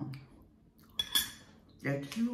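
A metal spoon clinks against a glass bowl.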